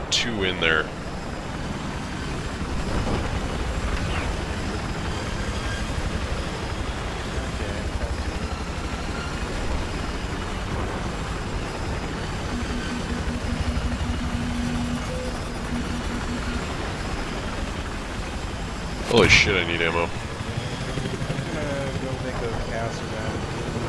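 A helicopter's rotor thumps steadily with a low, constant engine roar.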